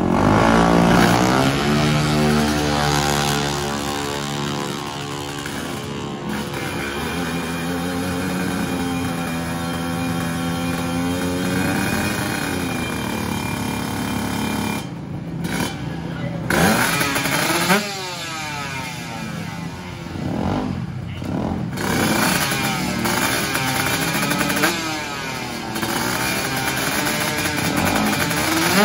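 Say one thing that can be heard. Racing motorcycle engines idle and rev loudly close by.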